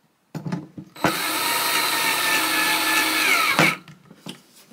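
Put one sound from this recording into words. A small power tool whirs steadily, then stops.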